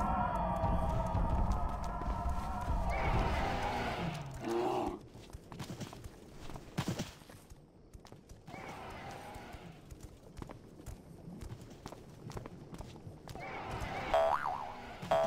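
Mounts' hooves clop on cobblestones.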